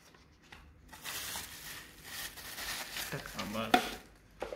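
A plastic sheet crinkles.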